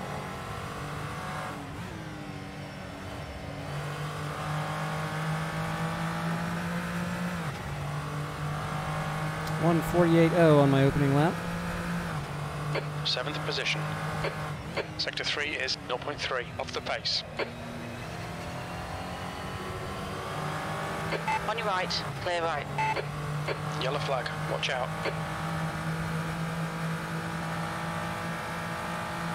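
A race car engine in a racing game revs and shifts gears.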